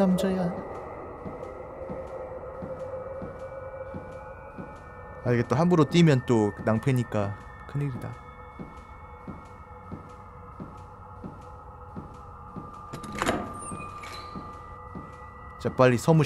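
Footsteps tap steadily along a wooden floor.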